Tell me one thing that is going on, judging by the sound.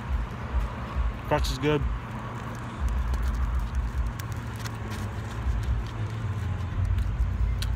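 A man chews food with his mouth open.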